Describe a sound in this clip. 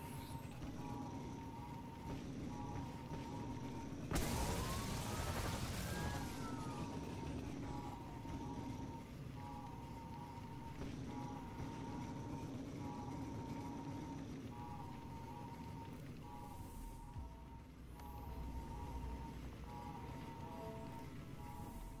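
A hover bike engine hums steadily.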